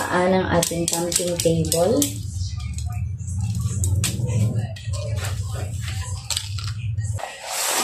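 Metal table legs clink and rattle as they are unfolded.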